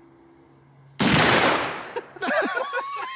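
A large rifle fires a single loud, booming shot outdoors.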